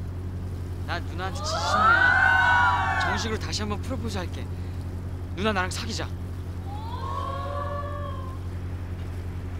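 A young man speaks loudly and with feeling, close by.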